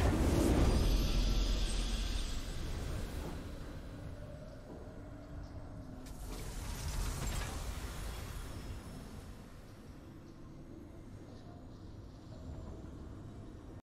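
A game's victory fanfare swells and fades.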